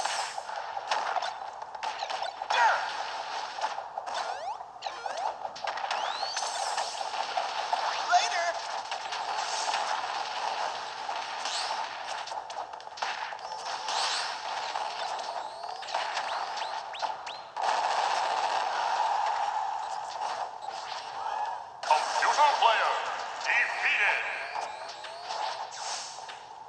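Punches, blasts and explosions from a fight ring out rapidly.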